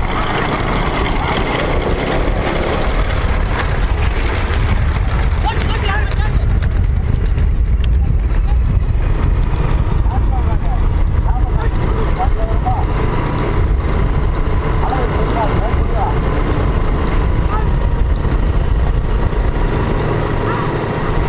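Cart wheels rumble along a paved road.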